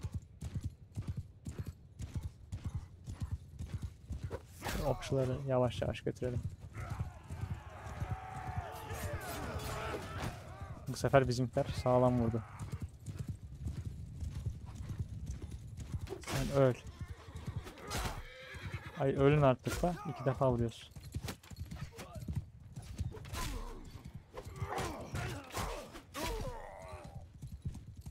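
Horse hooves gallop steadily over grass.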